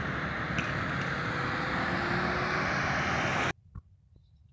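A car drives past on a road.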